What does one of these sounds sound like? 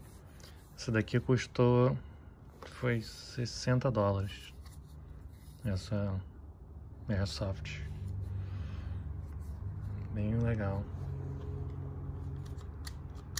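A plastic pistol clicks and rattles in a hand.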